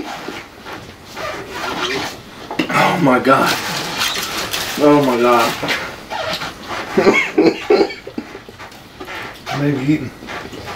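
Paper wrappers rustle and crinkle.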